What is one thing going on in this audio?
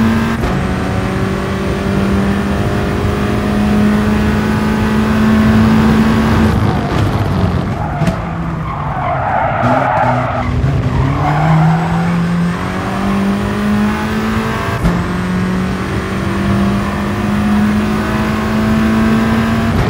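A racing car engine roars at high revs, drops in pitch under braking and climbs again as it accelerates.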